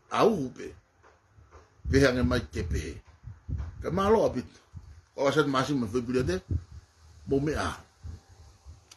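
A middle-aged man speaks calmly and close to the microphone, in short phrases with pauses.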